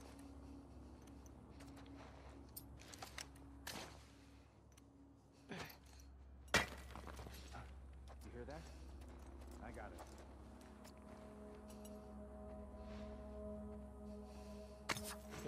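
Soft footsteps shuffle over a gritty, debris-strewn floor.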